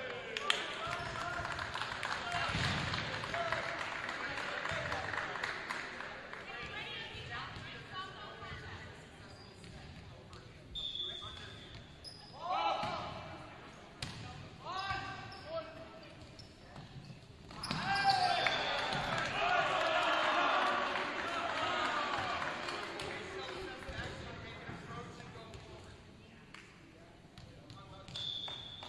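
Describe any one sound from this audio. A crowd of spectators cheers and chatters in a large echoing gym.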